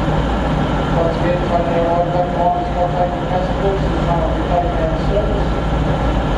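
A train's horn sounds briefly in the distance.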